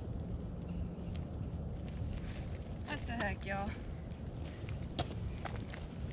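Footsteps crunch on a path, approaching.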